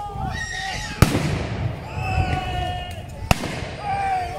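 Musket shots bang loudly outdoors.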